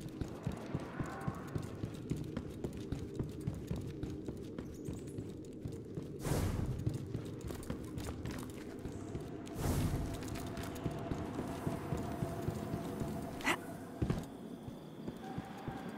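Footsteps crunch at a steady walking pace on rocky ground.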